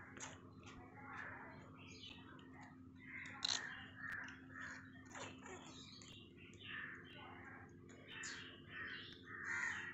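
A kitten mews softly.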